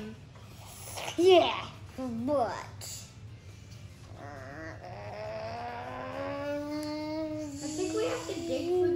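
A young boy speaks and sings playfully close by.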